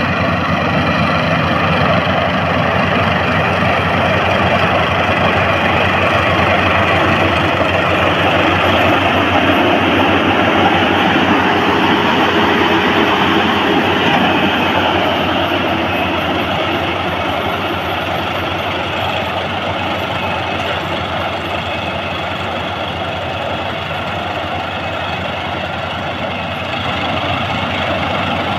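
A combine harvester engine drones steadily up close.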